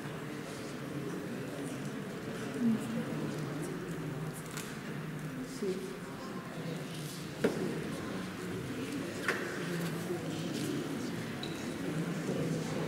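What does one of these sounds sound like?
A paintbrush softly brushes across paper.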